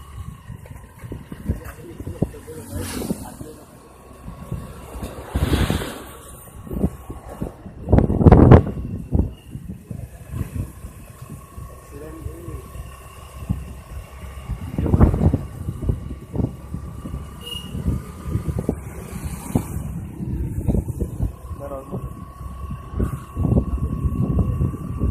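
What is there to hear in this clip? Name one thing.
Bicycle tyres roll over rough asphalt.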